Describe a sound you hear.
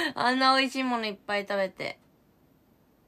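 A young woman speaks close to a microphone in a bright, animated voice.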